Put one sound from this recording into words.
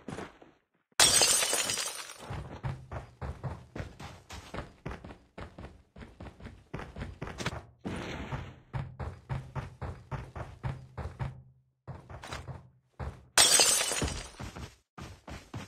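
Footsteps thud quickly across the ground and wooden floors.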